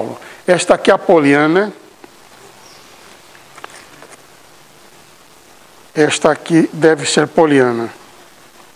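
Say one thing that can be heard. An elderly man speaks with animation in a large echoing room.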